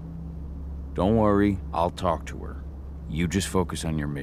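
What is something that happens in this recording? A man speaks calmly in a low, reassuring voice.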